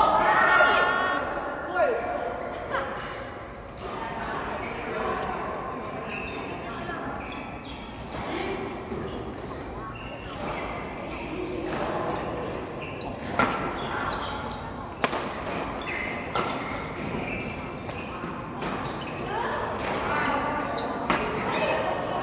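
Badminton rackets strike a shuttlecock back and forth in a large echoing hall.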